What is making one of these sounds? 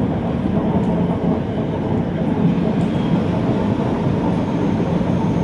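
Train wheels clatter on rail joints.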